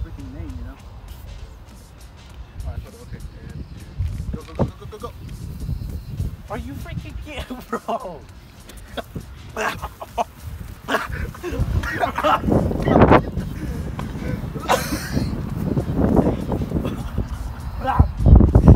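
Two young men talk and laugh outdoors.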